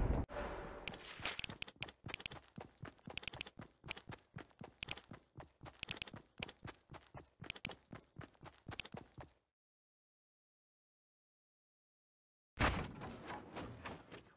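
Wooden panels snap into place with rapid knocks.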